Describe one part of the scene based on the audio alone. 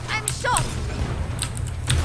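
A shotgun is reloaded with metallic clicks.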